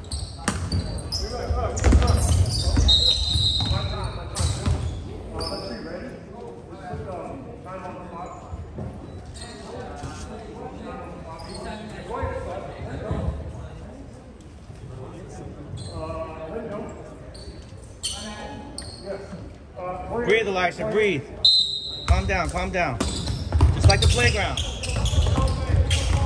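Young players call out to each other.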